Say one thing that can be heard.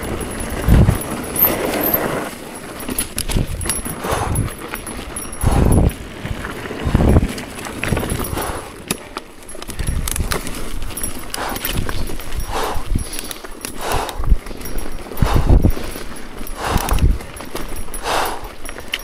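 Bicycle tyres crunch and skid over a rough dirt trail.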